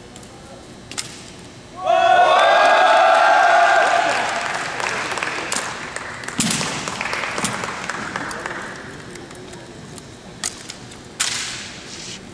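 A rifle is slapped and spun with sharp knocks.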